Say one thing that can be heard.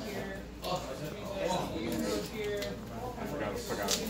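A deck of cards is shuffled.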